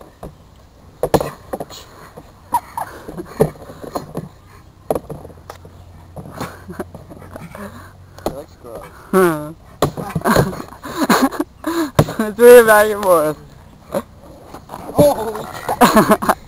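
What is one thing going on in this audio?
Bumps and knocks sound against a hollow plastic tube.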